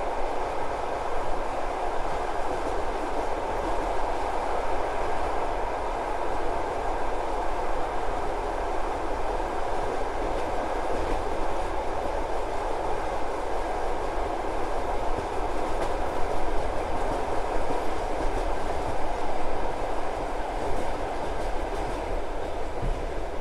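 Wind rushes past the open train window.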